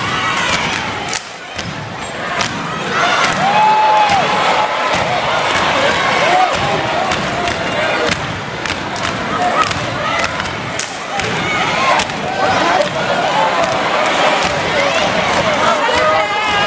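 A large crowd cheers and screams in an echoing arena.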